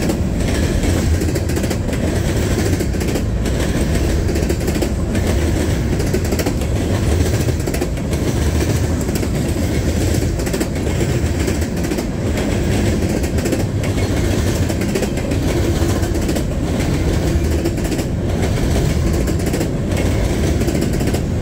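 Steel wheels clatter rhythmically over rail joints.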